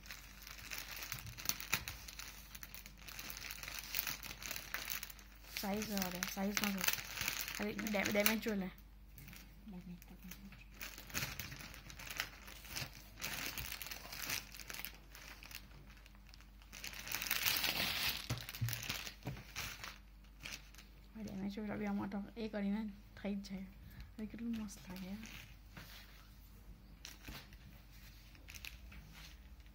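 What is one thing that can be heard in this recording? Fabric rustles and swishes as cloth is handled and folded up close.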